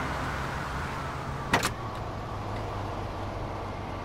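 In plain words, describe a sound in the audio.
A car door opens and shuts.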